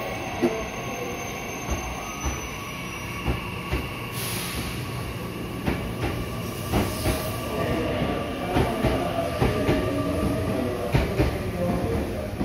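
A train rolls past, its wheels clattering and thumping over rail joints.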